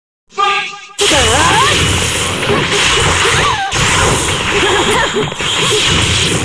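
Fighting game sound effects whoosh and crackle with magical slashes.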